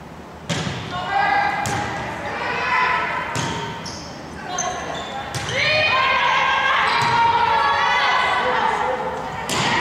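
Young girls shout and call out to each other.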